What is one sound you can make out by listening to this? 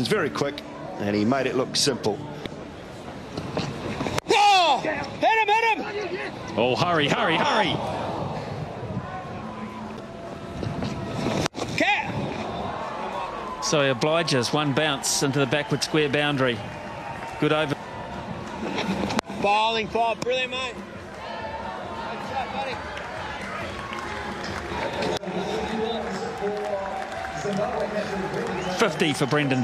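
A crowd cheers and murmurs outdoors.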